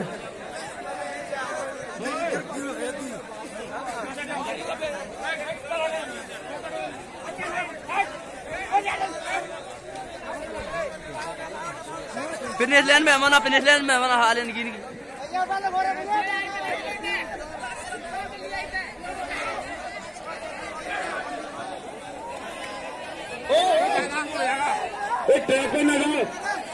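A crowd of young men chatters and calls out nearby outdoors.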